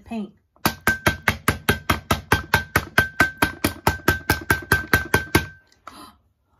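A plastic bottle taps rapidly against a metal pot.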